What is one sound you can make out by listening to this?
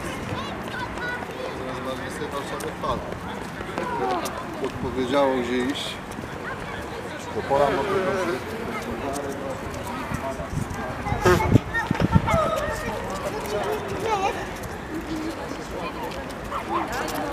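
People talk calmly nearby outdoors.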